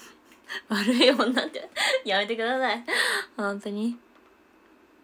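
A young woman laughs cheerfully close to a microphone.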